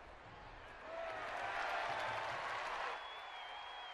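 A stadium crowd cheers loudly, then dies down.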